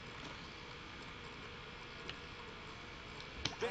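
A soft menu click sounds once.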